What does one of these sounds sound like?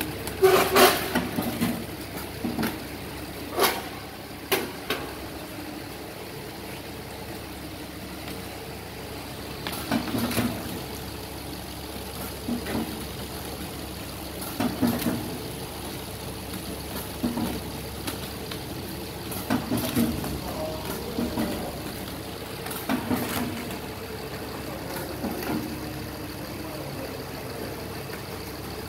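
A packaging machine hums and rattles steadily.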